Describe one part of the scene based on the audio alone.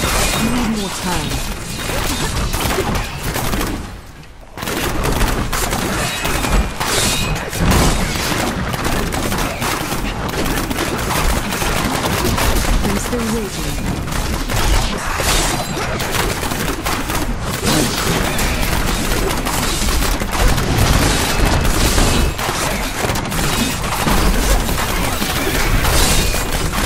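Fiery blasts boom and thud again and again.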